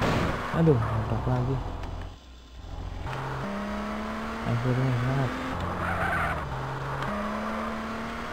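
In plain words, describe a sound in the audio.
Tyres screech on tarmac.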